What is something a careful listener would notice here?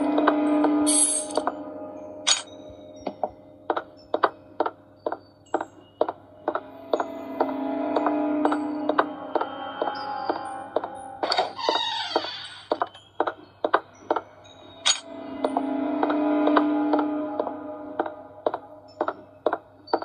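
Tense game music with steady beats plays from a tablet's speaker.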